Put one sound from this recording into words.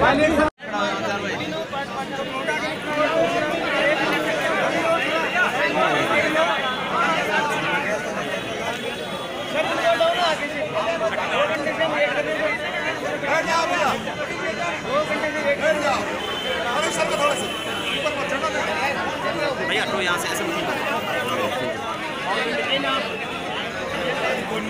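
A crowd of men and women talk over one another close by, outdoors.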